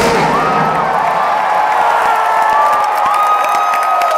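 Fireworks crackle and pop loudly.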